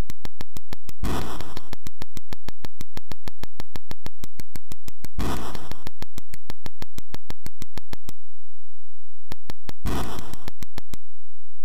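Short bursts of harsh electronic hiss come from a retro video game.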